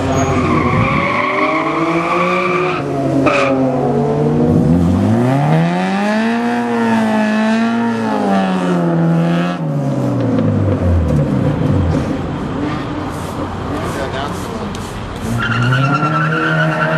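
A car engine revs and roars as it accelerates away.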